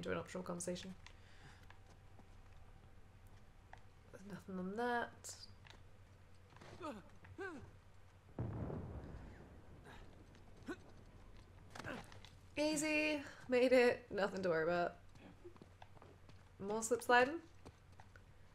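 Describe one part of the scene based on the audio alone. A young woman talks with animation into a headset microphone, close by.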